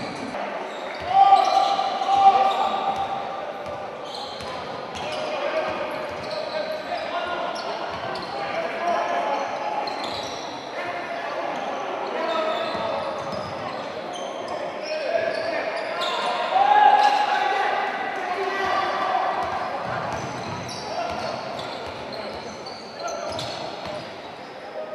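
A crowd of spectators murmurs and shouts in an echoing hall.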